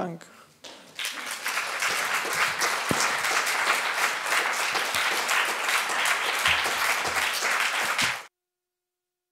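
An audience applauds steadily, then the applause cuts off.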